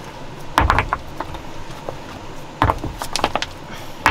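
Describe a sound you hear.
Dry twigs and leaves rustle as hands move them.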